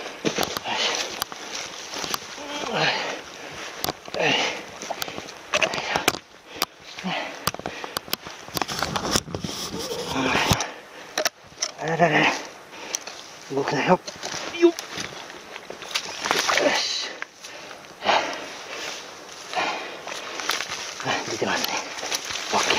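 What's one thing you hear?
Footsteps crunch on leaves and loose stones.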